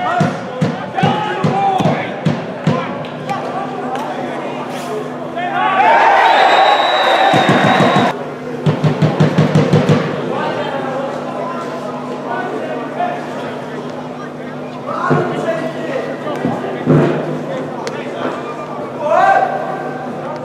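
Young men shout and call to each other at a distance outdoors.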